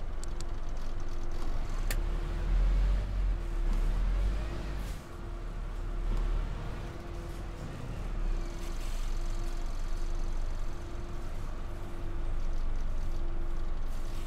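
A bus engine rumbles low and steady as the bus drives along.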